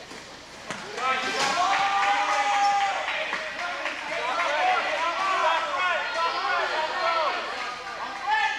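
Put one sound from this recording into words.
A crowd of men and women shouts and chatters in a large echoing hall.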